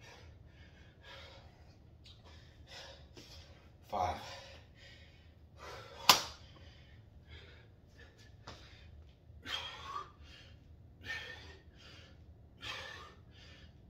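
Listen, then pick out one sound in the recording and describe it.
A man breathes hard in short bursts.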